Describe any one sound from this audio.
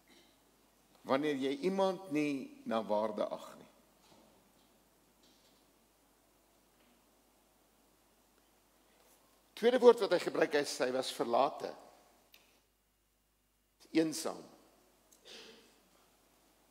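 An elderly man speaks calmly into a microphone, with long pauses, in a large echoing hall.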